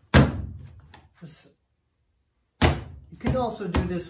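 A slab of clay slaps onto a table.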